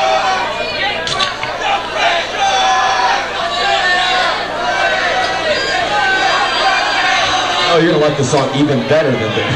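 A rock band plays loudly live on stage.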